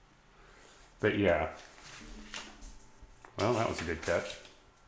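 An electric guitar strums chords.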